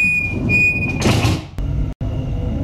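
Train doors slide shut with a hiss.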